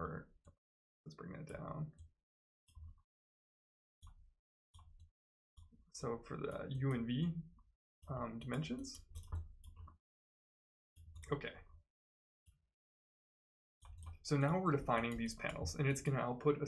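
A man speaks calmly and explains close to a microphone, with pauses.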